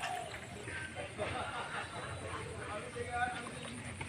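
A bird flaps its wings and splashes on the water.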